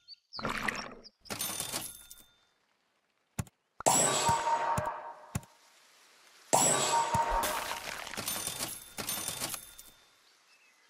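Short game sound effects chime and pop.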